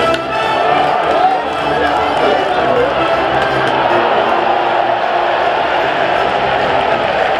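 A large crowd of fans chants and cheers in an open stadium.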